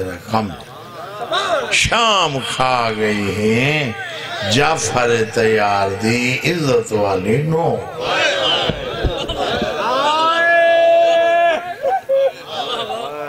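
A man recites with passion through a microphone, his voice echoing.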